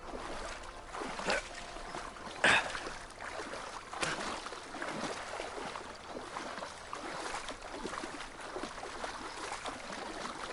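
Water trickles and splashes over rocks.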